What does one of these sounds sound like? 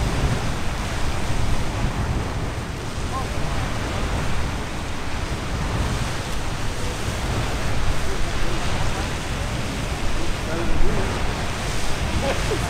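A geyser roars and hisses as it sprays water and steam.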